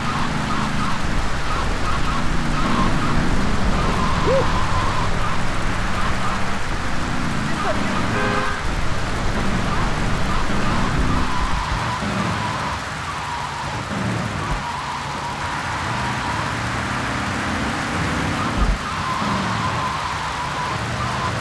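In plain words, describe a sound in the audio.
A car engine hums steadily as a taxi drives along.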